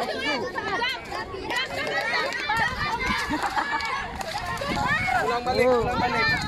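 A boy laughs close by.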